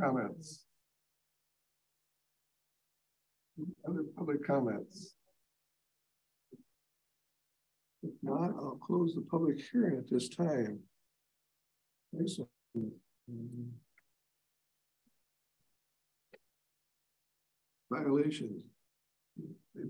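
A man speaks calmly through a microphone, in bursts with pauses.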